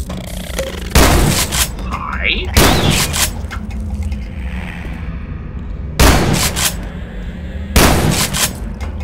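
A shotgun fires several loud blasts that echo off hard walls.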